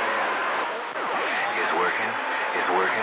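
Warbling whistles sweep up and down over radio static.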